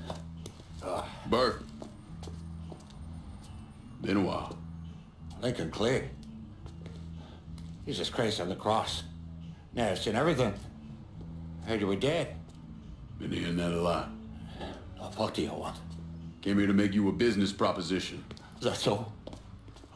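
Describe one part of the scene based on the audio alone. A middle-aged man speaks calmly in a low voice.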